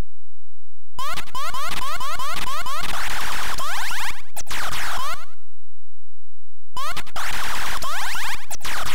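Harsh electronic buzzing and crackling noise from a retro computer game rattles loudly.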